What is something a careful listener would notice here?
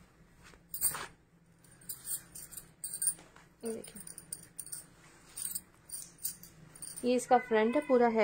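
Fabric rustles and swishes as it is handled.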